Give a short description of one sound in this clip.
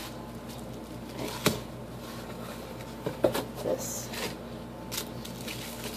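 A cardboard box is handled and knocks on a table.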